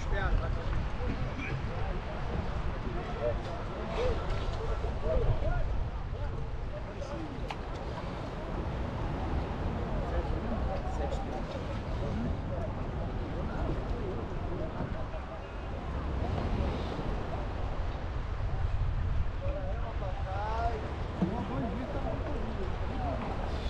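Wind rumbles across a microphone outdoors on open water.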